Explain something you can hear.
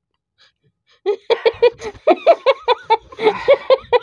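A young woman laughs loudly in bursts, close by.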